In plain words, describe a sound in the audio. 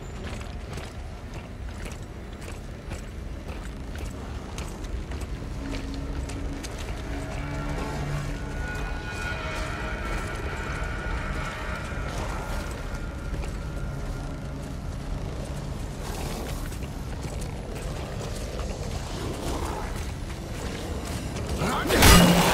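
Footsteps crunch slowly on the ground.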